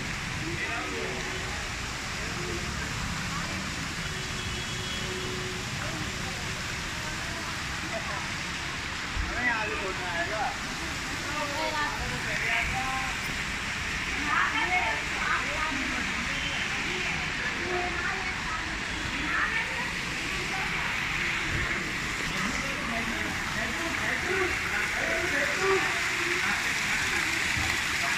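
Fountain water splashes steadily.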